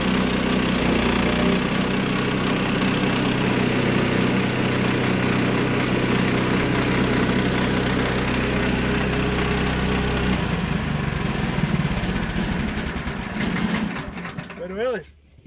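A band saw blade cuts through a log.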